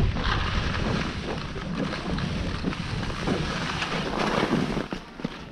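Skis hiss and scrape through soft snow.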